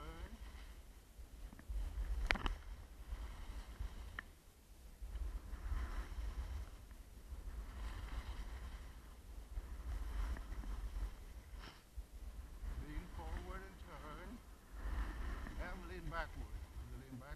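Wind rushes and buffets loudly against the microphone.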